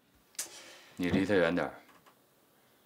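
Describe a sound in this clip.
A younger man speaks quietly, close by.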